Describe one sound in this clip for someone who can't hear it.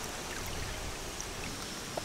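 Water drips and splashes into a stream.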